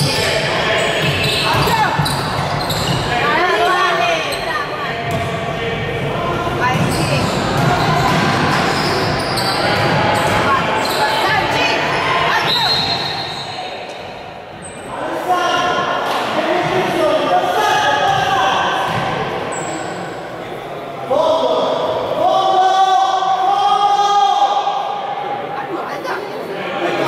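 Young players shout and call out to each other, echoing around the hall.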